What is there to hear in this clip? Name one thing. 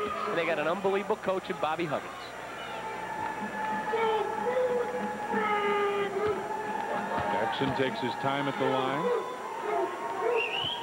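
A large crowd murmurs in a big echoing arena.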